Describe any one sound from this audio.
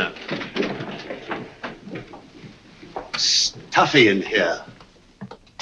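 Men murmur and talk over each other.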